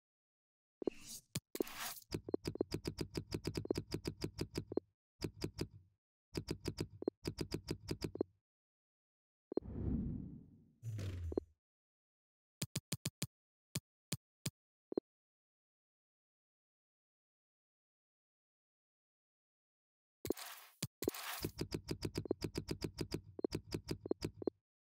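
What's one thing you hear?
Short electronic menu clicks tick in quick bursts.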